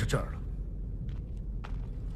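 A heavy metal lock clicks and turns.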